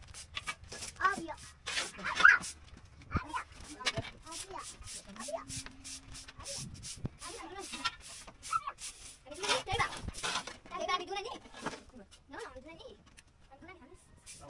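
A broom sweeps a dusty floor with scratchy strokes.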